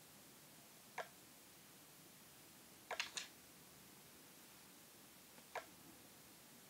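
Soft clicks sound as game menus are tapped.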